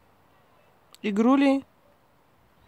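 A dog gives a short, high whine.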